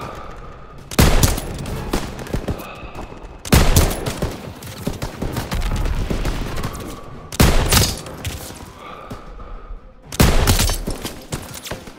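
A sniper rifle fires loud shots that echo away.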